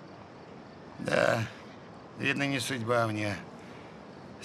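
An older man answers in a low voice, close by.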